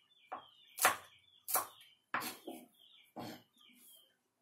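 A knife chops sharply on a wooden board.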